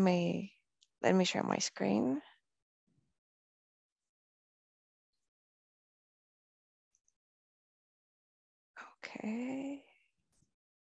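A young woman speaks briefly over an online call.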